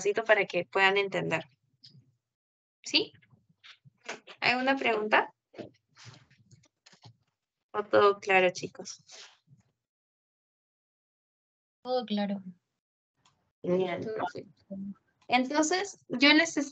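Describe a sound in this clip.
A young woman speaks calmly and explains, heard through an online call.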